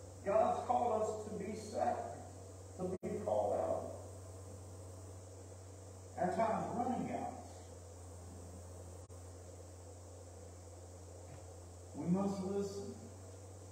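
A man speaks calmly into a microphone in an echoing hall, with long pauses.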